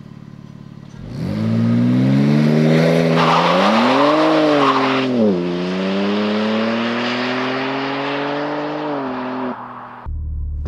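A car accelerates away hard with a loud, rumbling engine that shifts through gears.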